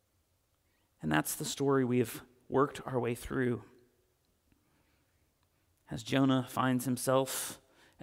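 A man speaks slowly and calmly through a microphone, with long pauses.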